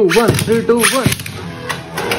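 A launcher's ripcord zips as a spinning top is launched.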